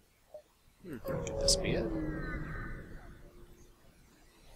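A spaceship jumps away with a sweeping electronic whoosh.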